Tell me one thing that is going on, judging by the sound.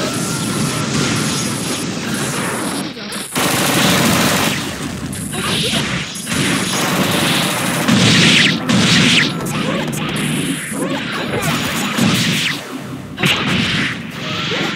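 Rapid video game hit effects and blasts crash over and over.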